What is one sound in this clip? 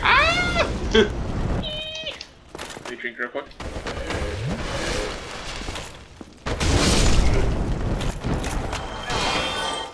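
Flames roar and whoosh in bursts.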